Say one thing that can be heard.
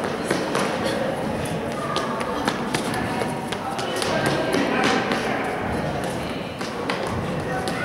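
A tennis racket hits a ball.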